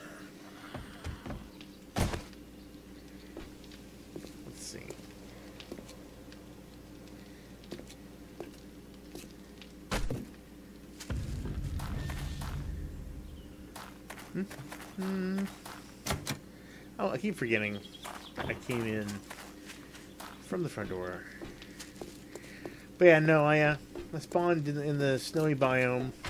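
Footsteps tread on a hard floor and on gravel.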